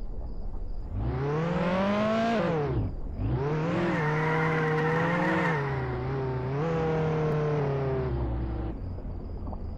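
A car engine revs hard, rising and falling in pitch as the car speeds up and slows down.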